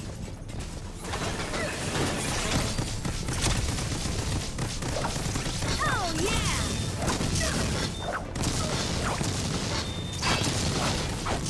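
Small explosions and impacts burst in quick succession.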